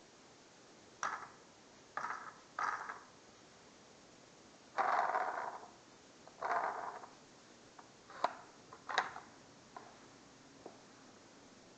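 A toy's plastic parts rattle and click as a hand turns them.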